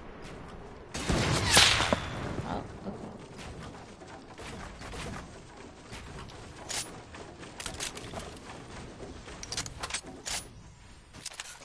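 Wooden walls and ramps clatter into place in quick bursts.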